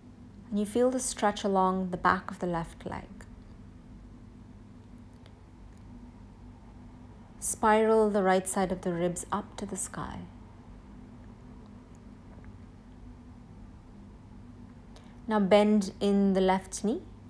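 A woman speaks calmly and close by, giving slow instructions in short phrases.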